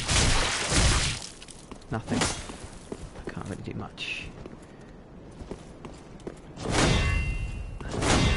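A sword swings and clashes with a loud whoosh.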